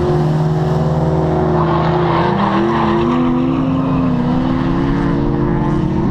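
Tyres screech on tarmac as a car drifts.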